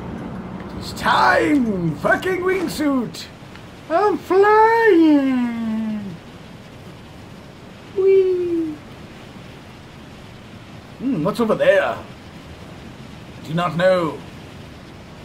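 A man with a deep voice talks animatedly into a close microphone.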